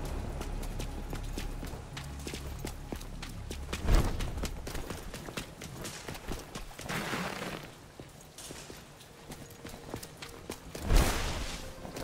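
Footsteps splash quickly on wet pavement.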